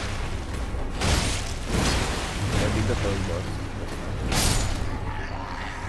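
A sword swishes and strikes in quick bursts.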